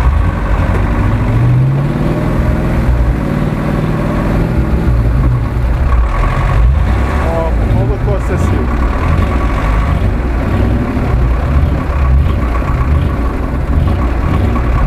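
A heavy truck engine roars and labours steadily.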